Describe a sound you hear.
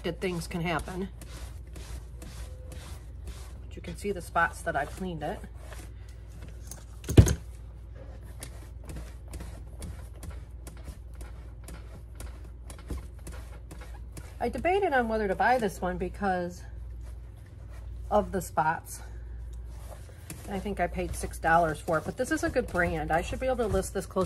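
A cloth rubs against suede.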